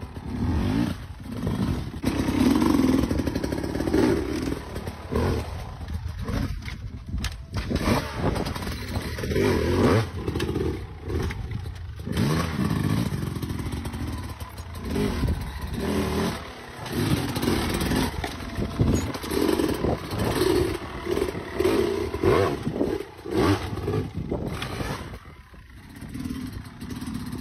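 A dirt bike engine revs hard and sputters close by.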